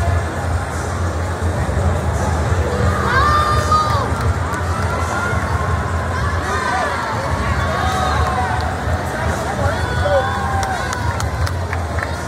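A crowd of young people cheers and shouts loudly.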